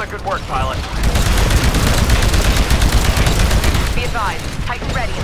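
A gun fires rapid bursts.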